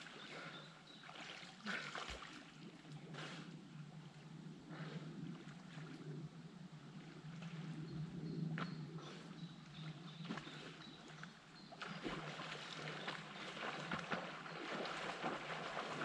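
Small waves lap gently against the shore.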